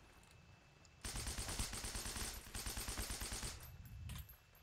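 A rifle fires in a rapid burst of shots.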